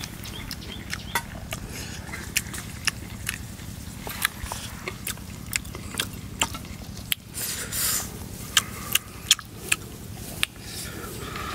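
A spoon scrapes and clicks inside a coconut shell bowl.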